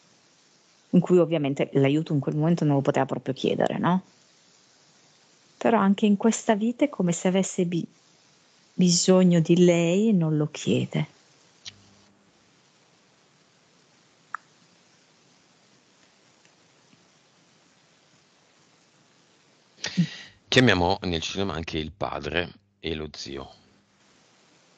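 A man speaks calmly and close into a headset microphone, in bursts with pauses.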